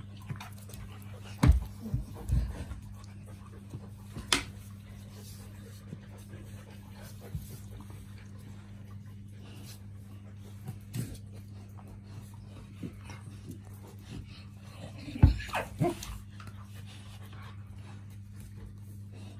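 Two dogs scuffle and paw at each other on a hard floor.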